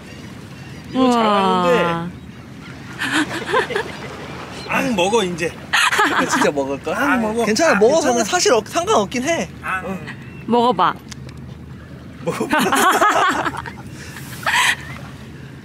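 A small child talks and giggles close by.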